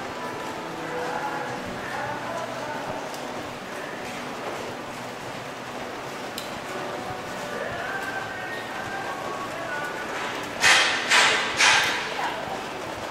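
Light rain patters steadily on wet pavement outdoors.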